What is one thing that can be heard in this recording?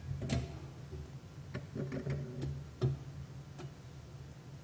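Glass cups clink as they are set down.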